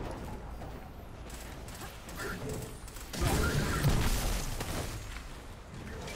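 Gunfire bursts out in short bursts.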